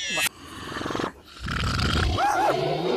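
A large cartoon creature snores loudly.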